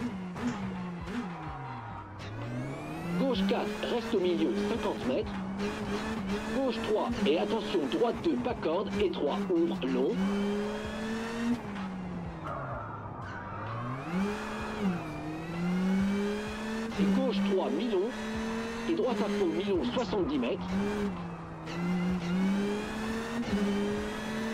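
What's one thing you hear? A car engine roars and revs, rising and falling in pitch as gears change.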